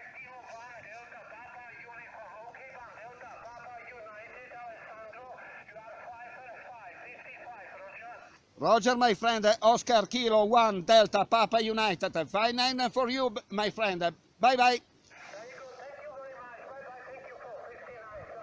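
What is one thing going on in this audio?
A voice speaks over a radio loudspeaker, thin and crackly.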